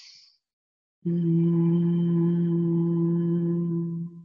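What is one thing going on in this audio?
A middle-aged woman hums a long, steady low note.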